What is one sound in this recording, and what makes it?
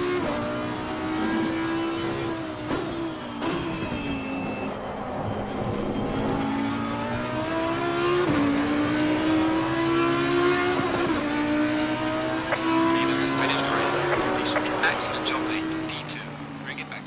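A racing car engine roars at high revs and drops in pitch with each gear change.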